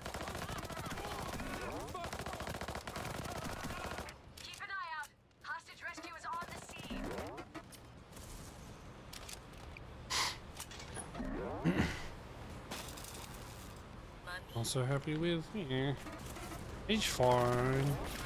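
A rifle fires rapid bursts of gunshots.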